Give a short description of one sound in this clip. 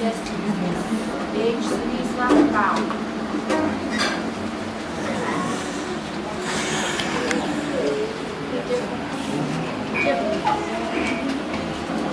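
A group of young people chatter in overlapping voices close by.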